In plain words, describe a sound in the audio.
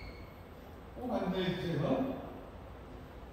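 A man speaks briefly into a microphone in a large echoing hall.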